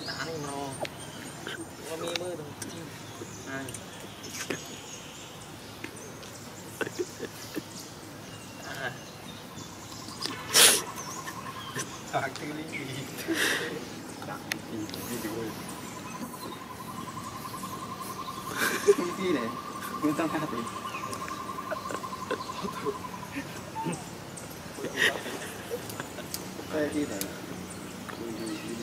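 A baby monkey squeaks and whimpers softly close by.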